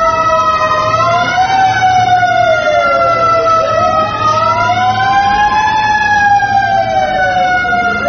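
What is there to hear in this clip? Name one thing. A fire engine siren wails nearby.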